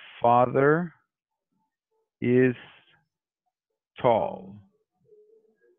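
A man speaks slowly and clearly through an online call, pausing between short phrases.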